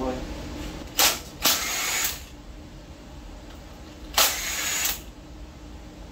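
An impact wrench whirs in short bursts.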